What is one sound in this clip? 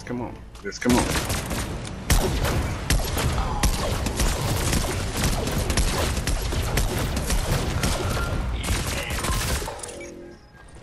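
Gunshots rattle in quick bursts.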